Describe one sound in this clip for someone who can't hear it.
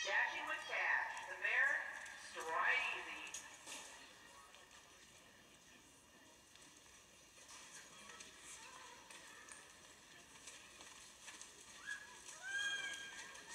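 A horse gallops on soft dirt in a large echoing arena.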